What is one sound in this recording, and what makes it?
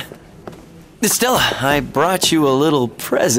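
A young man speaks cheerfully.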